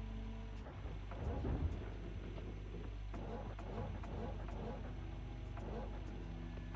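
An excavator bucket scrapes and scoops through dirt and gravel.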